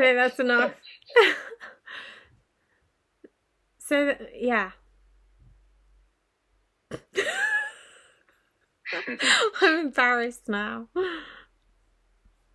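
A woman talks with animation and laughs over an online call.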